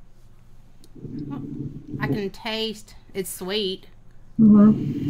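A second young woman talks over an online call.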